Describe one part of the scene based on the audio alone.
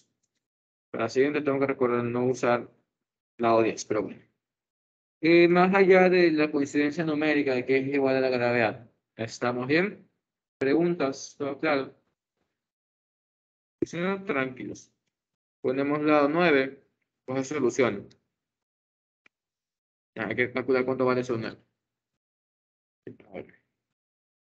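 A young man speaks calmly through a microphone in an online call, with pauses.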